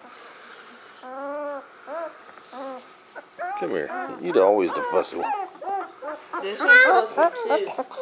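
Puppies whine and yelp close by.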